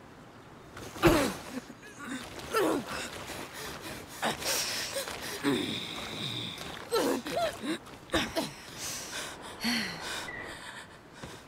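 A young woman groans and cries out in pain.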